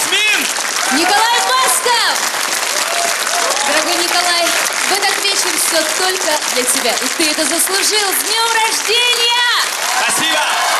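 A young woman sings into a microphone over music.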